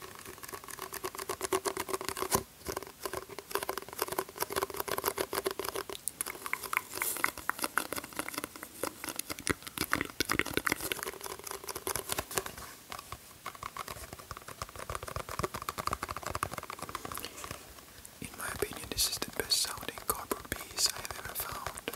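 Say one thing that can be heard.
Hands crackle and tap right up against a microphone.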